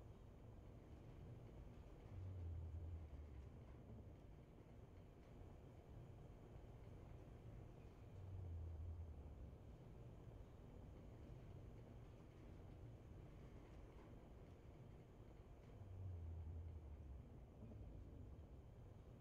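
A spacecraft's thrusters rumble low and steadily, swelling louder now and then.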